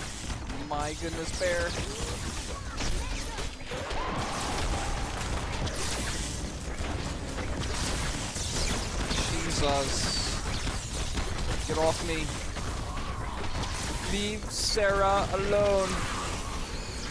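Game gunfire and blasts crackle steadily.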